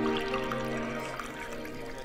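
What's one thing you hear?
Wine pours into a cup.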